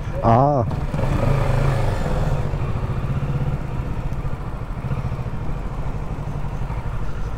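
A motorcycle engine revs as the bike pulls away.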